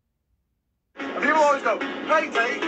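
A man speaks with animation, heard through a small speaker.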